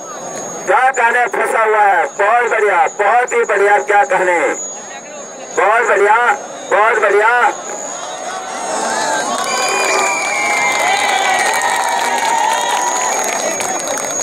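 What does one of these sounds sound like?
A large crowd outdoors cheers and shouts.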